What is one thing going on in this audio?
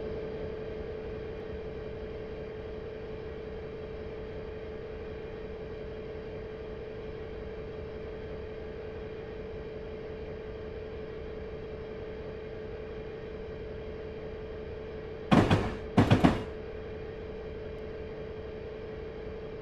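A diesel locomotive engine hums steadily.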